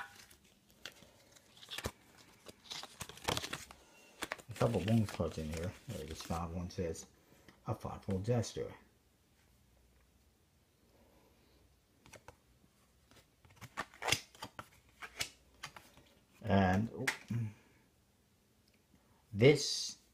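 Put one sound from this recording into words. Stiff paper cards rustle and flick between fingers.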